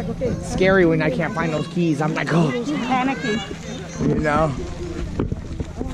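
A woman talks nearby, calmly.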